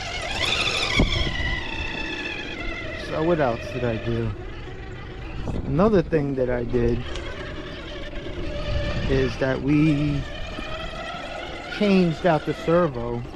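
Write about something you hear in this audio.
A small electric motor whines as a toy truck crawls over rock.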